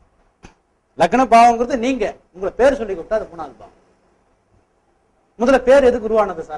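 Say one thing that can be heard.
A middle-aged man lectures with animation through a clip-on microphone, in short bursts with pauses.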